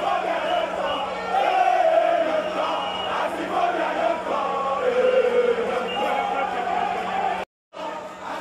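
A large crowd of fans sings and chants outdoors.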